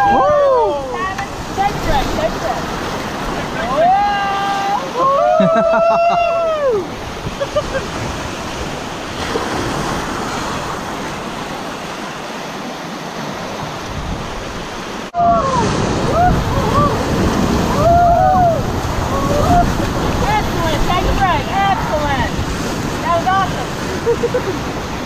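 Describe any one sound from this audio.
Young men shout and whoop with excitement.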